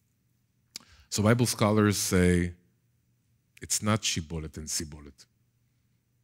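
A middle-aged man speaks with animation through a headset microphone.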